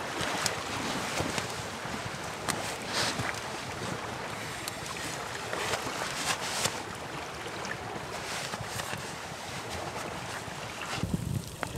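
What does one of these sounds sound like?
Nylon fabric rustles and crinkles close by.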